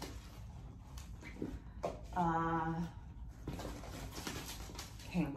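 Items rustle and clink inside a handbag.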